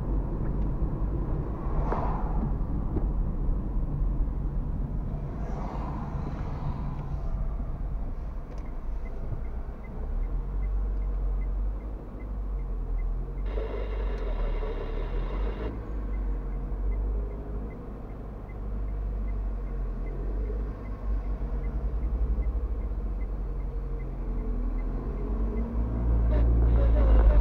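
A car drives along an asphalt road, with a low rumble heard from inside.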